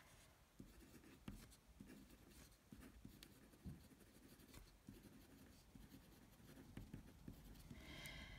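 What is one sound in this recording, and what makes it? A felt pen scratches softly across paper.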